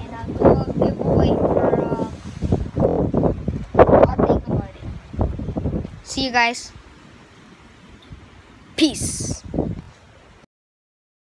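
A boy talks close to the microphone with animation.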